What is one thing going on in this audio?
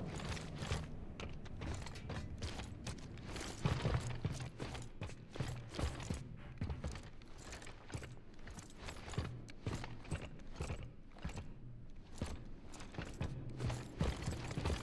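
Heavy boots clank on a metal floor in steady footsteps.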